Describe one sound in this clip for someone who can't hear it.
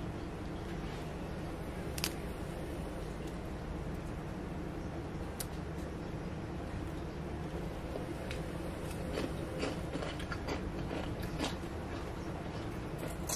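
Crisp fried sweets crackle and snap as hands break them apart.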